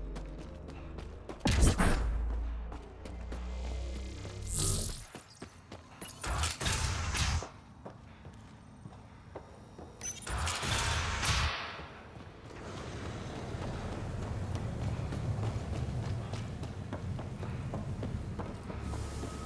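Heavy footsteps thud on the ground.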